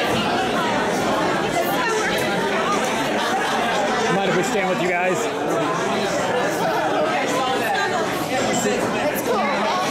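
A crowd of people chatters loudly indoors.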